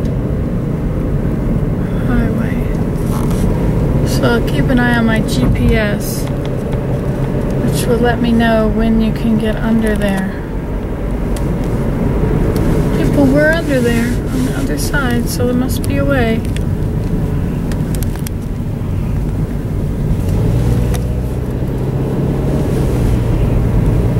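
Tyres roll on pavement from inside a car.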